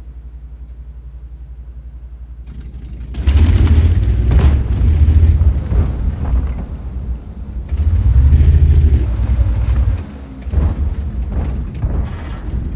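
A heavy tank engine rumbles low, growing loud and surging in waves.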